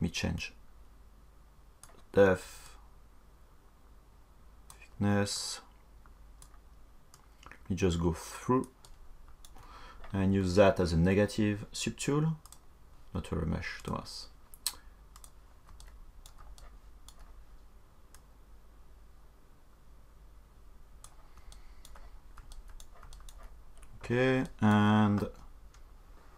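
A young man talks into a microphone in short bursts, calmly and close by.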